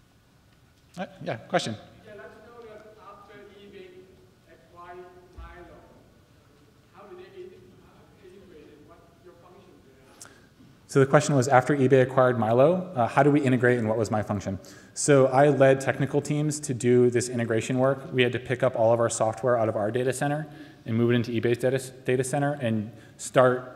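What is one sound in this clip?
A man speaks into a microphone in a large hall, pausing at first and then talking steadily.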